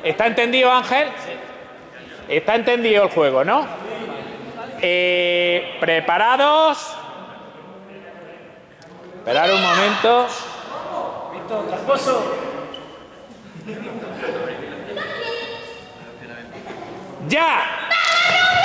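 Young people shout and call out in a large echoing hall.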